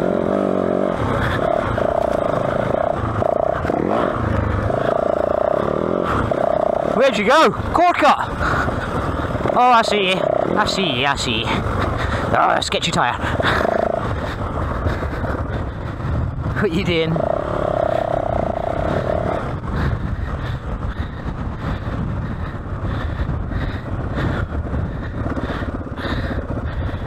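A dirt bike engine drones and revs up and down close by.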